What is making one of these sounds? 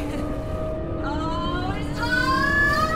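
An electric energy beam whines and rises in pitch.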